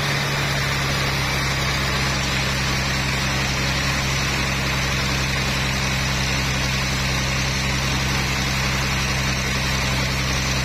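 A sawmill motor hums steadily.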